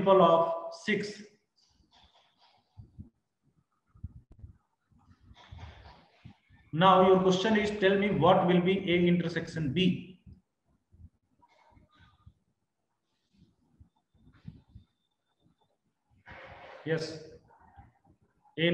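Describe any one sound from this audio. A man speaks calmly through a microphone, explaining, with pauses.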